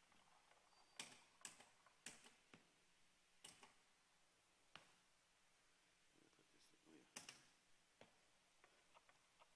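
Wooden instrument keys click and tap.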